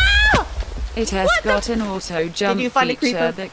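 A young woman talks excitedly into a microphone.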